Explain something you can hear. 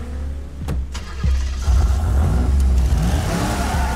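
A car engine rumbles deeply at idle.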